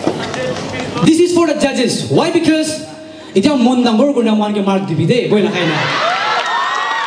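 A young man sings loudly into a microphone through a loudspeaker.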